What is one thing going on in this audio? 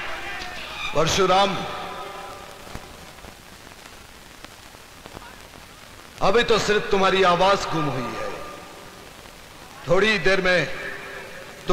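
A man speaks forcefully into a microphone, his voice carried over loudspeakers.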